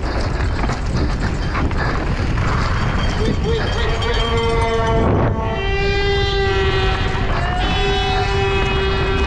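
Bike tyres rumble and rattle over a bumpy dirt track.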